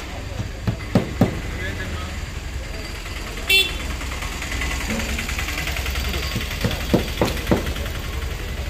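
A hammer knocks on metal in sharp, separate blows.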